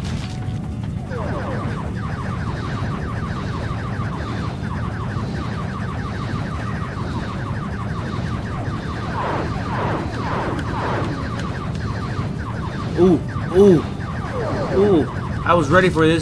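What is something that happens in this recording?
Rapid laser shots fire in a steady stream.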